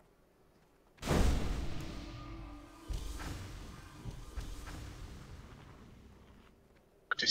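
A magic spell bursts with a rushing whoosh.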